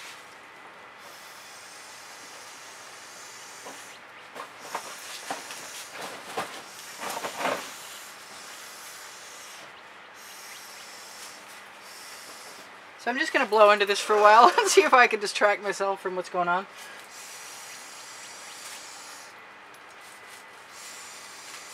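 A paintbrush scrapes softly across a canvas.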